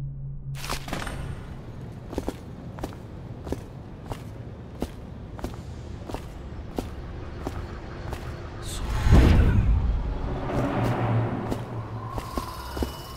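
Footsteps tread steadily across a hard rooftop.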